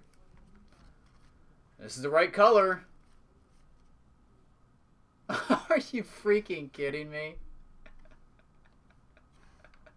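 Trading cards rustle and slide against each other as hands shuffle through them.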